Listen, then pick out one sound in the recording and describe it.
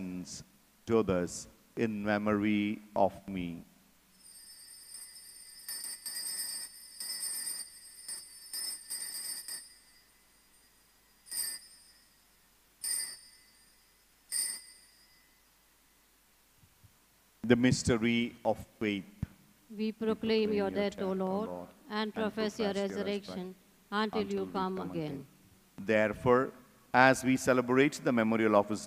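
A man speaks and chants slowly through a microphone.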